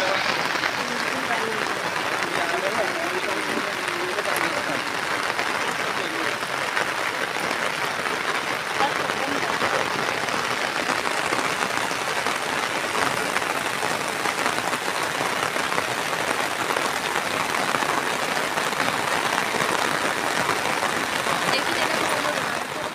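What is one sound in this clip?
Floodwater rushes past with a steady roar.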